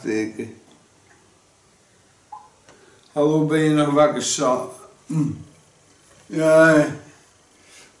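A middle-aged man speaks close by, with animation, in short bursts.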